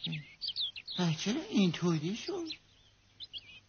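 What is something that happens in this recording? A high, childlike cartoon voice speaks with animation.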